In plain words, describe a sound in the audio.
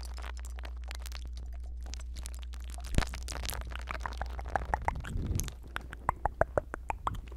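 Fingers tap and brush right against a microphone, very close.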